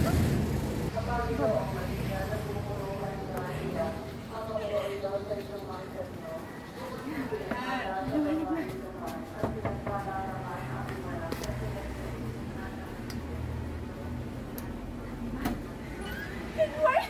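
A young woman talks cheerfully close to the microphone.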